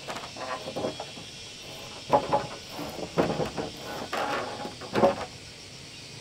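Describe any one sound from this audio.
A person handles wooden boards with knocks and scrapes.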